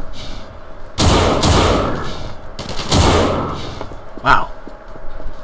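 A rifle fires several loud shots.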